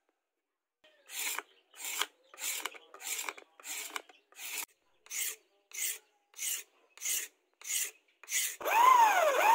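A knife shaves wood in quick, rhythmic strokes.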